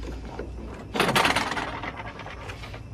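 A wooden window swings open with a rattle.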